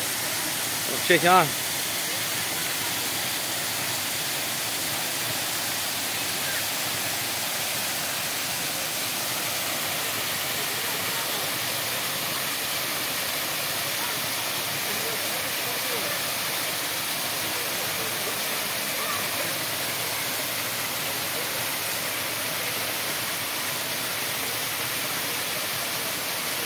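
A waterfall rushes and splashes steadily close by.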